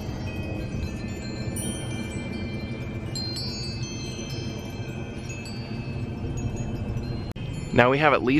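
Wind chimes tinkle and ring softly.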